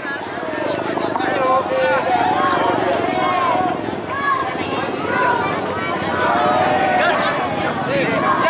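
A crowd of young men cheer and shout together outdoors.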